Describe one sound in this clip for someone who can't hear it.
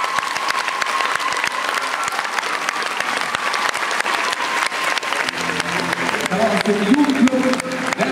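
An audience claps in a large echoing hall.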